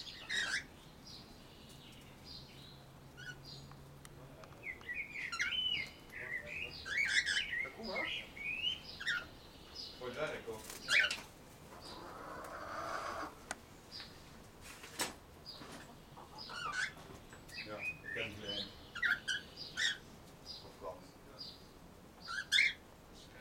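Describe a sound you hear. Cockatiels chirp and whistle close by, again and again.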